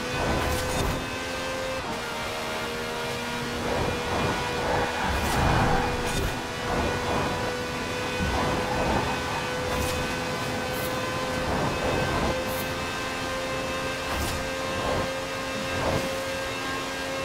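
Tyres hiss on the road.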